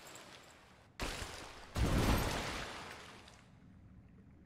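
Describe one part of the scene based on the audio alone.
Water splashes heavily as a body crashes into it.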